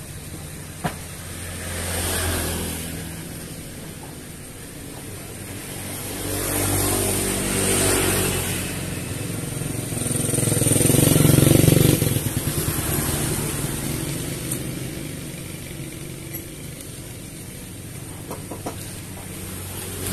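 A sewing machine hums and clatters as it stitches.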